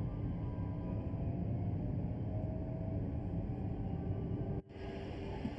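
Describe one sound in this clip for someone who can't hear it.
A train's electric motor hums and rumbles steadily as it rolls along the track.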